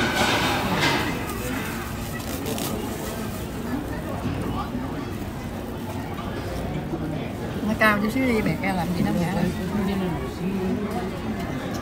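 Men and women chat at nearby tables.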